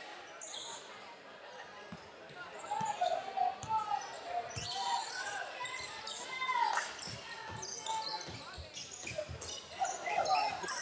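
A crowd of spectators cheers and calls out in an echoing gym.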